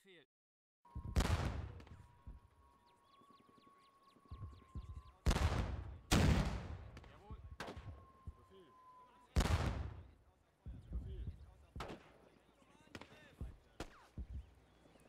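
Guns fire in sharp, booming shots.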